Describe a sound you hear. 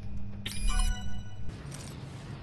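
An electronic chime beeps in quick rising tones.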